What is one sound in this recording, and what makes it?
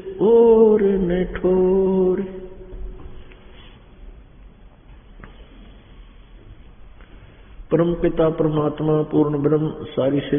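An elderly man chants in a drawn-out voice through a microphone.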